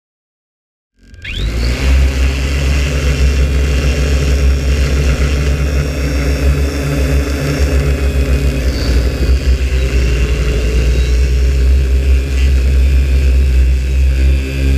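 A drone's rotors buzz and whine steadily.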